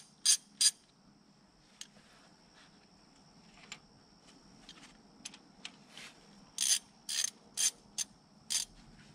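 A ratchet wrench clicks against metal engine parts.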